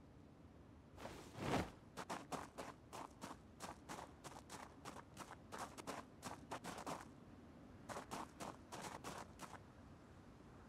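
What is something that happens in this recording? Footsteps crunch quickly on a gravel road.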